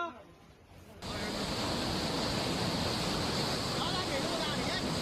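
Floodwater rushes and roars loudly.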